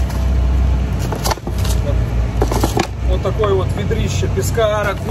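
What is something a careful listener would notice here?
A plastic water jug crinkles and knocks.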